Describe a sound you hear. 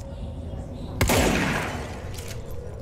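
A single gunshot bangs and echoes.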